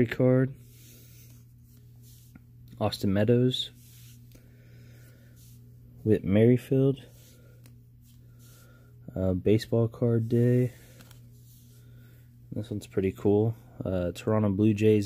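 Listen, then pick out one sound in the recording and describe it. Trading cards rustle and slide softly as a hand shuffles through them.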